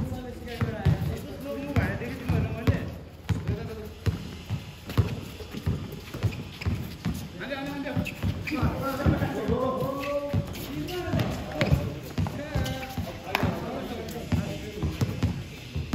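Sneakers squeak and shuffle on concrete.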